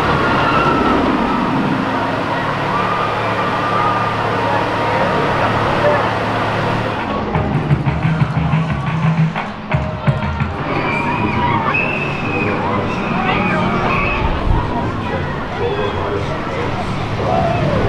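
Riders scream on a roller coaster.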